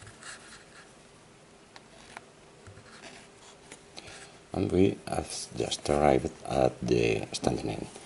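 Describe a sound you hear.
Thin wire rustles and scrapes as it is wound around a cardboard tube.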